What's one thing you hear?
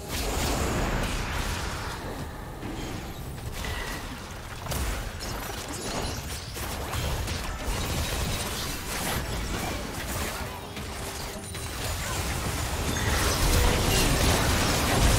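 Game spells and attacks crackle and thud in a battle.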